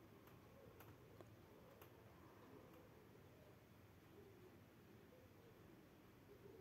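Hands rustle through wet hair.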